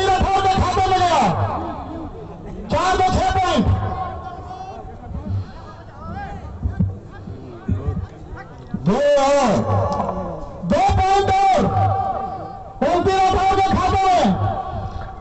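A man announces loudly through a loudspeaker in bursts, outdoors.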